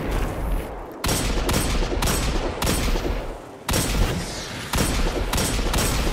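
A pistol fires quick repeated shots.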